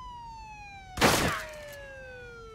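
A gun fires a loud shot close by.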